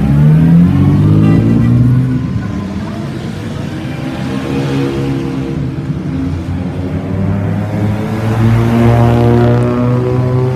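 A vintage car engine rumbles as cars drive past one by one.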